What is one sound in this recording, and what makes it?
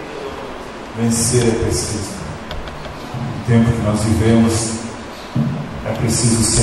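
A man sings into a microphone over a loudspeaker.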